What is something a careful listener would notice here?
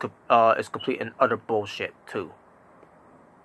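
A young man speaks calmly, close to the microphone.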